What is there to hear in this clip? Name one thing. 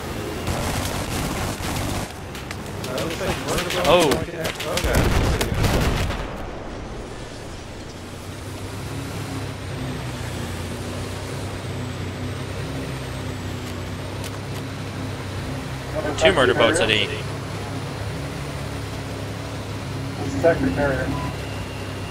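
A boat engine drones steadily.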